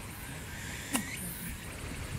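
A golf club chips a ball with a soft click.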